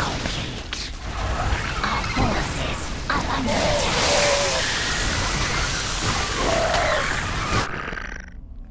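Gunfire and explosions crackle and boom in a loud battle.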